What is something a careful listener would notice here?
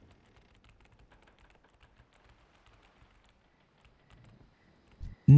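A big cat's paws patter quickly on the ground as it runs.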